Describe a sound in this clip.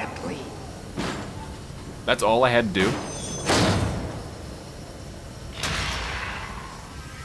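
Footsteps clang on metal steps.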